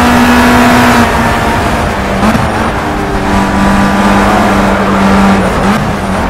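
A racing car engine drops in pitch as the car slows for a corner.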